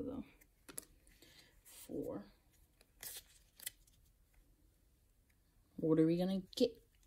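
Playing cards rustle and slap softly as they are flicked through by hand.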